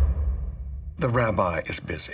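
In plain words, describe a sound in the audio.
An older woman speaks firmly.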